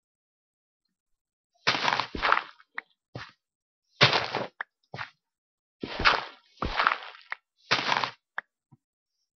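Blocks of dirt and stone crunch as they are dug out.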